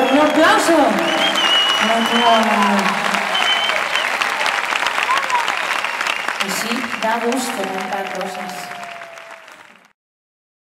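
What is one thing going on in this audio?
Audience members cheer and whistle.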